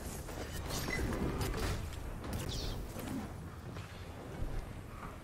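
Gunfire and explosions crackle from a video game.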